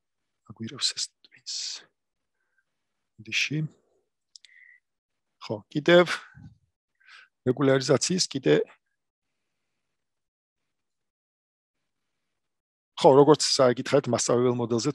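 A man speaks calmly through an online call microphone, pausing often.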